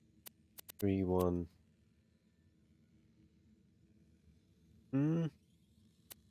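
A man speaks briefly into a microphone, close by.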